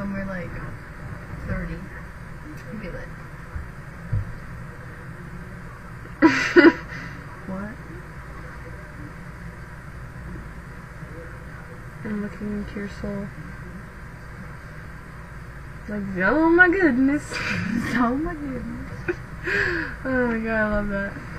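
Teenage girls talk quietly close to a webcam microphone.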